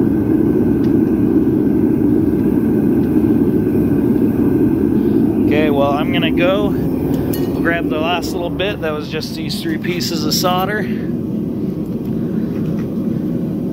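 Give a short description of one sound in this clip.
A gas torch roars steadily close by.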